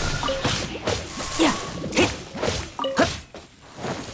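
A sword slashes and strikes with sharp whooshing hits.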